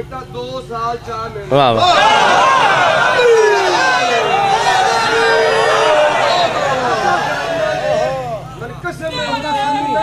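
A man recites loudly and passionately through a microphone.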